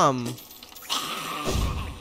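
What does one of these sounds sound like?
A sword slashes with quick swishing strikes.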